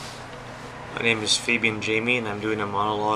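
A young man speaks calmly, close to the microphone.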